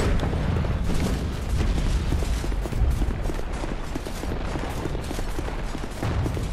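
Armoured footsteps run quickly over stone.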